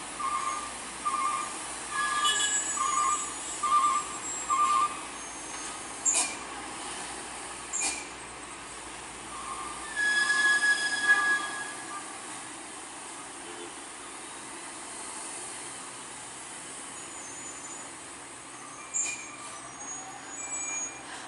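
A heavy truck engine rumbles slowly in the distance.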